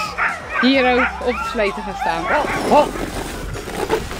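Sled dogs bark and yelp excitedly.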